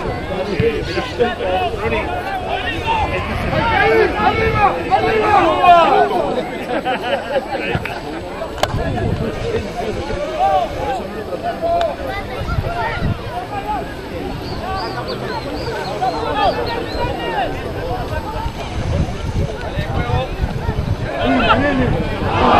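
Spectators shout and cheer from the sidelines outdoors.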